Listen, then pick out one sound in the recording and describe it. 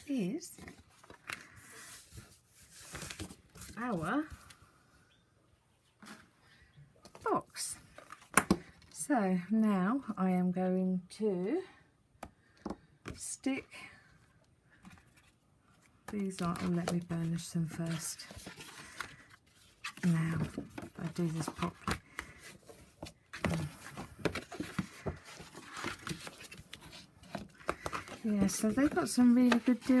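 Stiff card rustles and flaps as it is handled.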